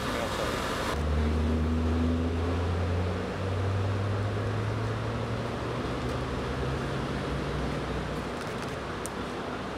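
A large truck engine idles nearby with a low, steady hum.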